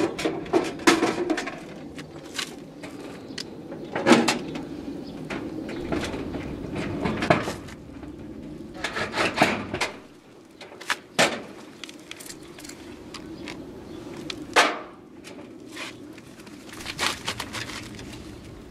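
Metal knocks and clatters against a corrugated wall.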